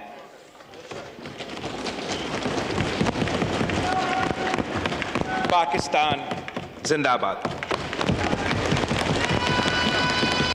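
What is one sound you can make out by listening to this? A large crowd applauds and thumps desks.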